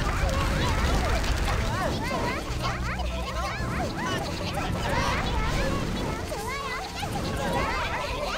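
Game sound effects whoosh and burst as magic attacks hit.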